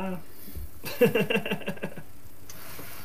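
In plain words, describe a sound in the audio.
A second man laughs and talks nearby.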